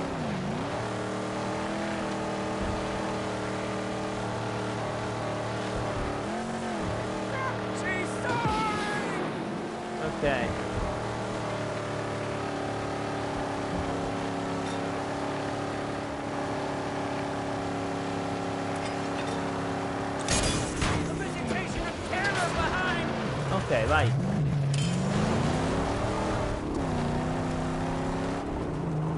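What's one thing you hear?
A V8 muscle car engine roars at full throttle.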